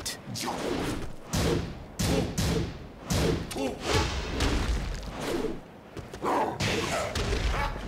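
Blows land with sharp thuds and smacks.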